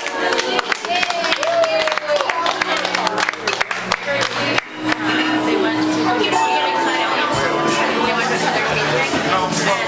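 A crowd of guests chatters and cheers in a room.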